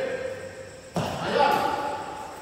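A racket sharply strikes a shuttlecock.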